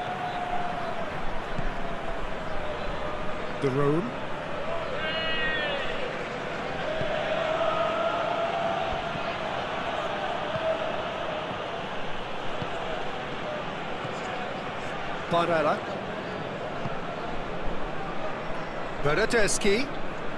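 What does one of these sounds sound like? A large crowd roars and chants steadily in a stadium.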